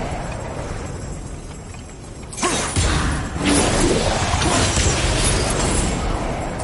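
Magical energy crackles and hums.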